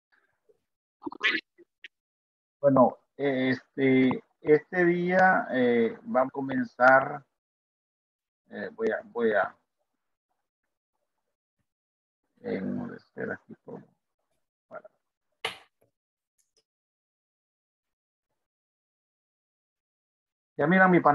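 A man speaks calmly through an online call microphone, in short bursts with pauses.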